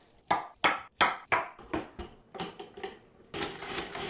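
A knife chops cauliflower on a wooden cutting board.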